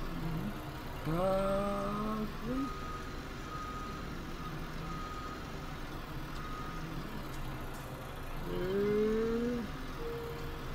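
A truck engine revs up.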